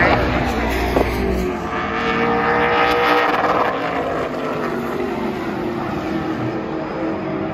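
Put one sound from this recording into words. Race car engines roar loudly as cars speed past on a track, outdoors.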